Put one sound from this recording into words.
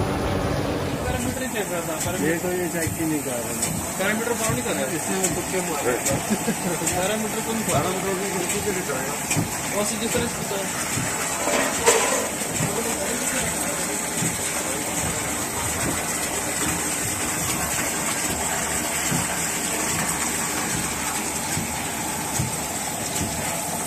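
Water streams and splashes steadily into a tank.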